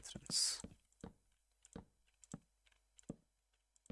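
Wooden blocks are placed with short, soft knocks.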